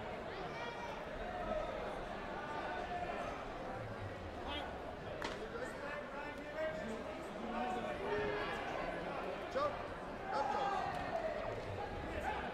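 Many people talk at once in a large echoing hall.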